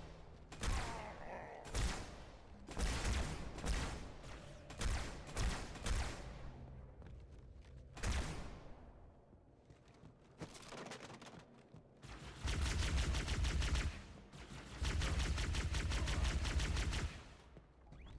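Plasma weapons fire in sharp, rapid bursts.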